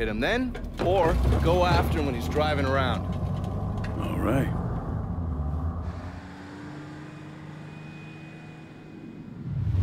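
A van engine hums as it drives along a street.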